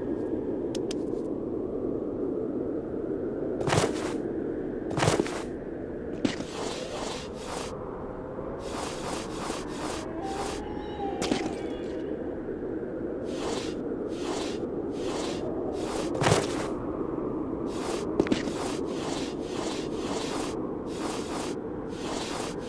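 Hands and feet scrape and shuffle on stone.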